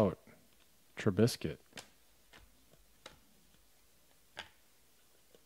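Trading cards flick and rustle between fingers.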